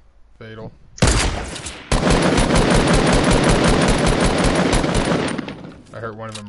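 A rifle fires a loud, rapid burst of shots.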